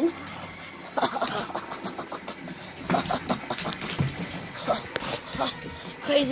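Fabric rustles as the puppy wriggles on a blanket.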